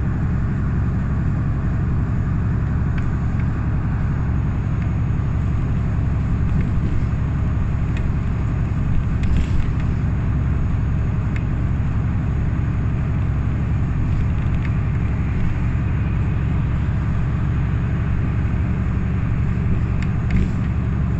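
A vehicle's engine rumbles steadily with road noise from inside a moving car.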